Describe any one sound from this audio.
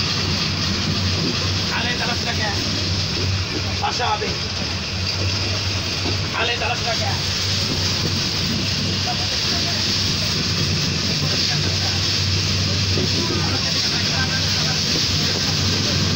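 A train rumbles and clatters steadily along the tracks.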